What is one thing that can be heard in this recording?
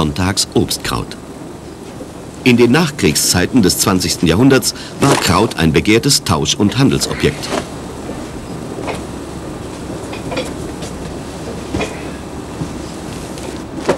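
Hands slap and spread wet apple pulp.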